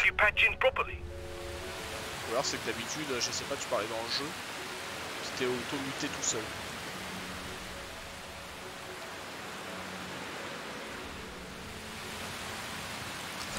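Rain falls steadily and hisses outdoors.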